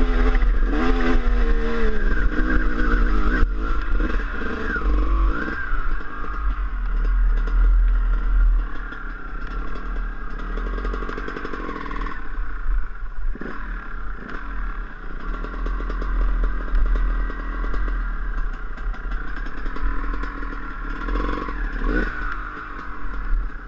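A dirt bike engine revs and sputters up close.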